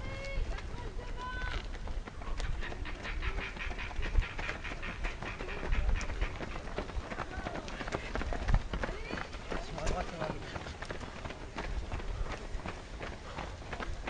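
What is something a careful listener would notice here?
Runners' feet patter on an asphalt road.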